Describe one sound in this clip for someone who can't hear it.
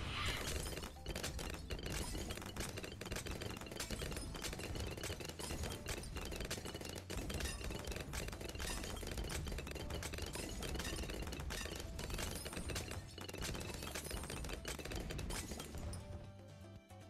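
Game balloons pop rapidly amid shooting sound effects.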